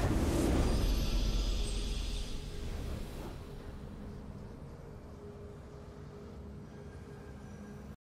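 A triumphant fanfare plays, then fades.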